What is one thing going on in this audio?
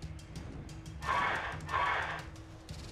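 A large winged creature screeches loudly.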